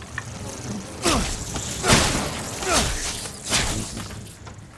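Gunshots boom loudly, several times.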